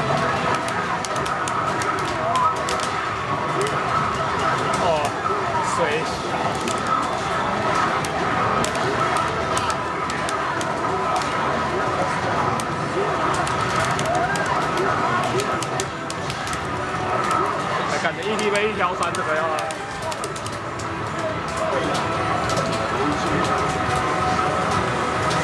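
Arcade fighting game music and sound effects play loudly from a cabinet speaker.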